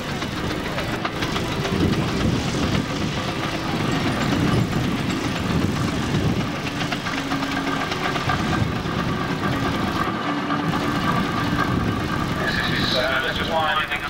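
A heavy truck engine rumbles and strains as it pulls a load.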